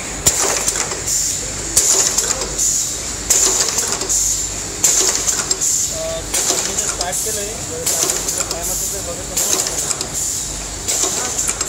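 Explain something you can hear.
Machinery clatters steadily with rhythmic hissing bursts of air.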